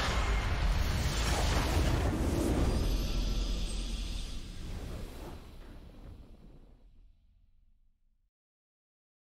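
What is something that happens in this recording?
A triumphant fanfare swells and slowly fades out.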